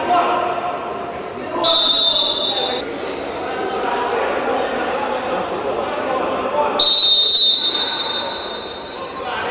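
Men shout to each other across a large echoing sports hall.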